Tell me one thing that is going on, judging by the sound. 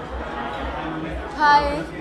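A young woman speaks close to microphones.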